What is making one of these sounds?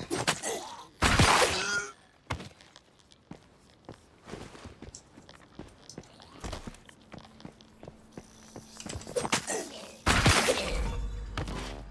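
Heavy blows land with loud thuds and cracks.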